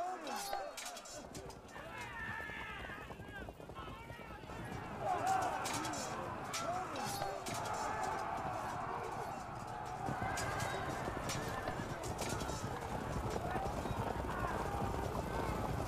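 Horses gallop across the ground.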